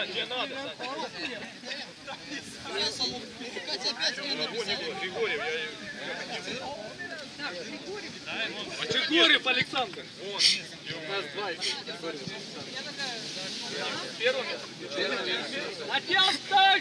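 Young men and women chatter together outdoors.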